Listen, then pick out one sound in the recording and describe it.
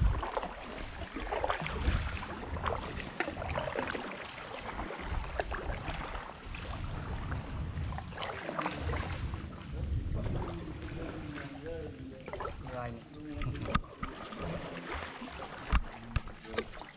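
A kayak paddle dips and splashes in calm water.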